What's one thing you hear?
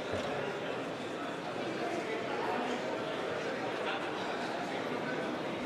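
A large crowd of men and women talks and murmurs loudly in a big echoing hall.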